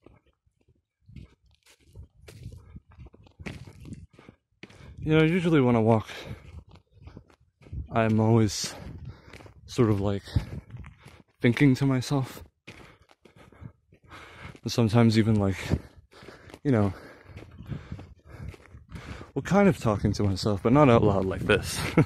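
Footsteps crunch on a gravel road.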